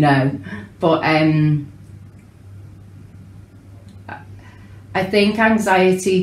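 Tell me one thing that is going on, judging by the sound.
A woman speaks calmly and warmly close by, with pauses.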